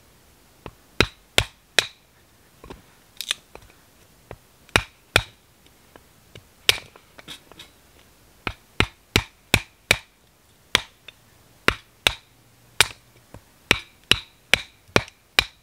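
A knife chops into wood with sharp, repeated knocks.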